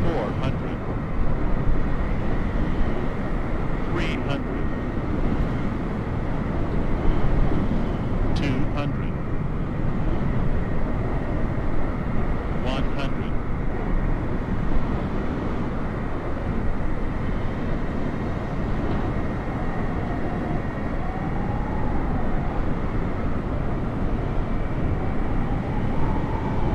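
A jet airliner's engines roar steadily as it flies low overhead.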